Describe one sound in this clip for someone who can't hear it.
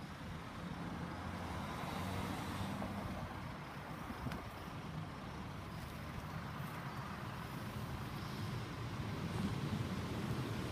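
A railway crossing alarm sounds repeatedly, close by.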